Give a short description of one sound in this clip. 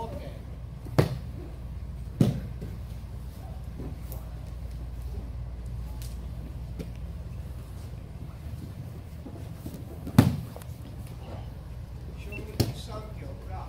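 Bodies thump onto a padded mat in a large echoing hall.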